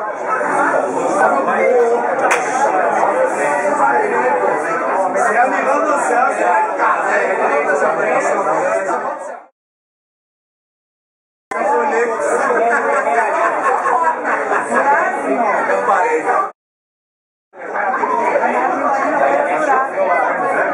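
A crowd of men and women chatter loudly and busily.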